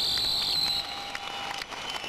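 Fireworks crackle and pop in the night.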